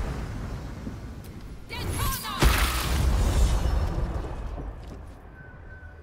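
Wind howls as a storm rages.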